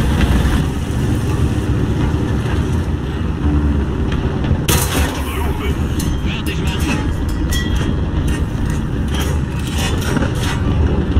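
A tank engine rumbles low.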